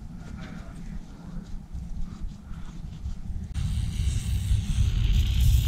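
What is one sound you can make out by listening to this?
Metal parts clink softly as they are handled.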